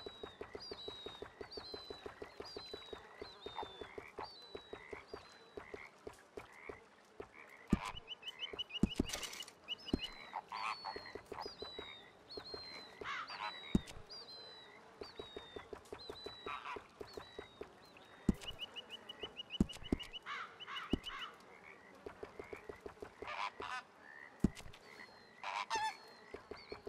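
Soft menu clicks tick rapidly as a selection scrolls through a list.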